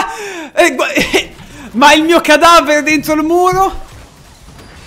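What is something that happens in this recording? A young man laughs loudly into a close microphone.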